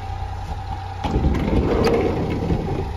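A car door unlatches and swings open with a click and a creak.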